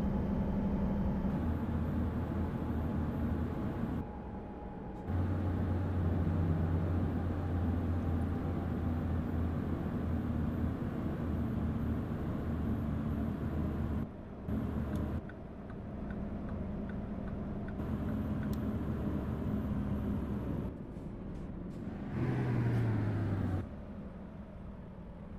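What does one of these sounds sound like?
A truck's diesel engine drones steadily and changes pitch as it slows.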